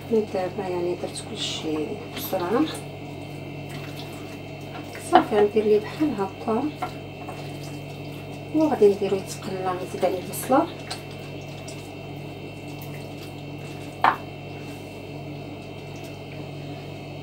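Hands squish and rub raw chicken pieces in a bowl.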